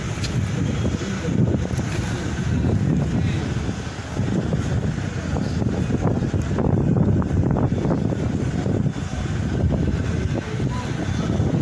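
Wind blows outdoors with a low rumble.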